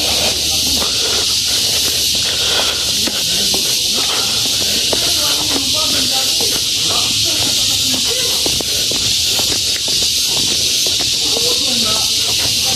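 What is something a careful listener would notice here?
Footsteps tread down concrete steps at a steady pace.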